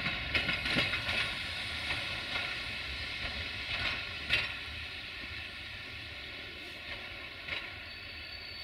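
Passenger coach wheels clack over rail joints as a train moves away and fades.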